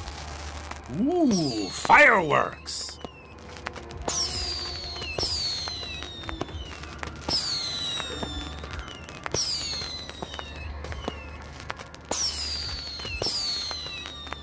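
Firework rockets whistle shrilly through the air.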